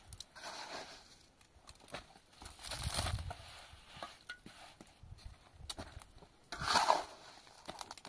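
A trowel scoops plaster from a metal bucket.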